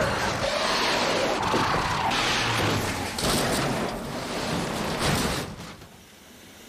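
Tyres skid on snow.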